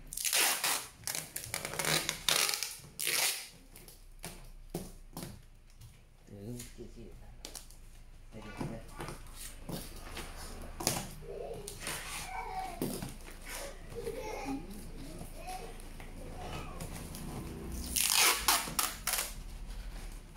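Packing tape screeches as it is pulled off the roll.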